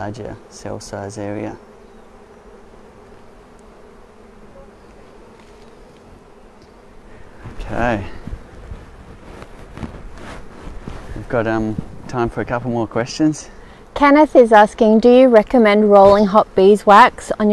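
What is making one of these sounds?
Bees buzz in a steady hum.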